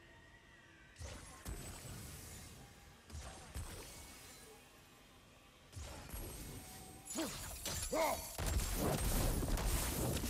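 Magical energy crackles and whooshes in bursts.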